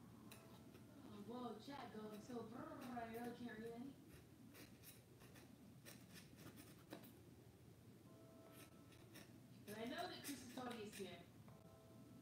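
A pen scratches on cardboard.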